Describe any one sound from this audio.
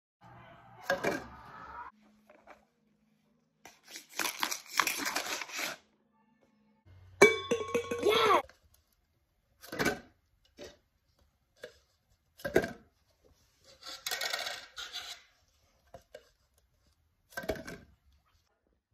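Plastic cups clatter and knock together.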